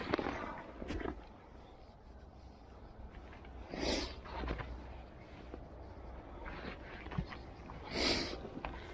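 Dry grass rustles and brushes close by in short bursts.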